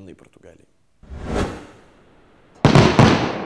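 A burst of flame whooshes.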